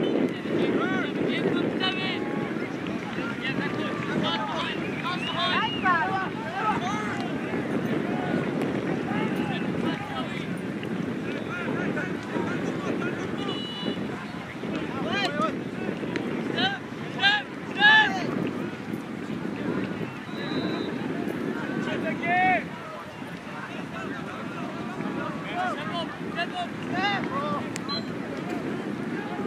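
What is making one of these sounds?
A crowd of spectators chatters and cheers in the distance.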